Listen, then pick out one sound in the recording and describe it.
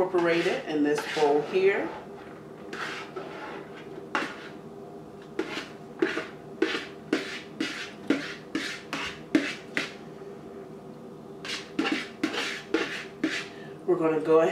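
A spoon scrapes and taps against a bowl.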